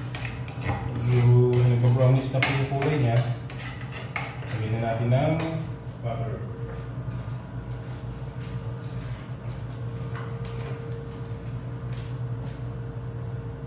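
A spoon scrapes against a frying pan.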